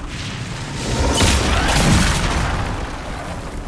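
A magical blast bursts with a loud rumbling boom.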